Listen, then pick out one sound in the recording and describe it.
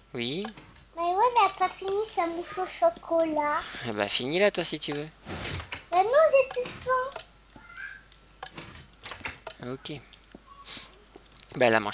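A wooden door clicks open and shut.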